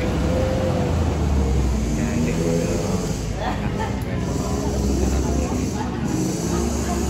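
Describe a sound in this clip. Young people talk and chatter nearby.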